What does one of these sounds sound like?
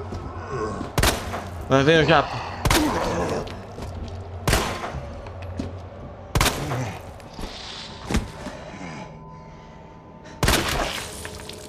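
A pistol fires single loud shots, several times with pauses between.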